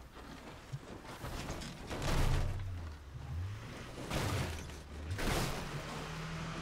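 Tyres rumble over rough ground and thump over bumps.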